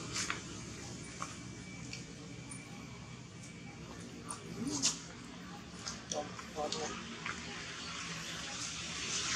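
A monkey chews and smacks loudly on fruit.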